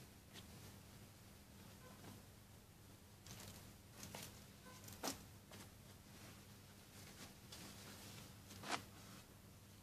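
Clothes rustle softly as garments are laid down one on another.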